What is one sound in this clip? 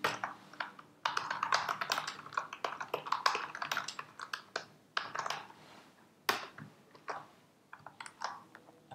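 Keys on a keyboard click rapidly in bursts.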